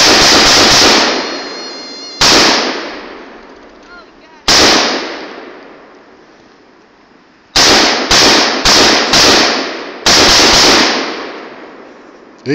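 A rifle fires loud shots outdoors, each echoing off hills.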